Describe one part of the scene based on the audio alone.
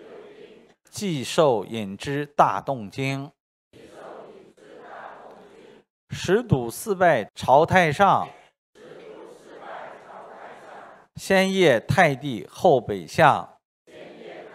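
A middle-aged man reads aloud into a microphone in bursts.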